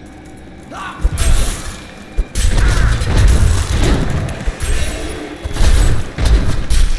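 Swords clash and weapons strike in a game battle.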